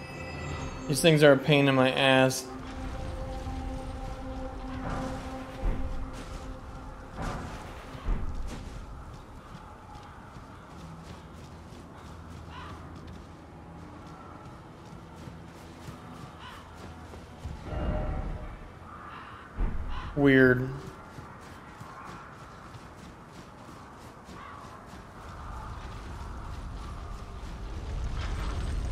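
Armoured footsteps crunch steadily on gravel and dry ground.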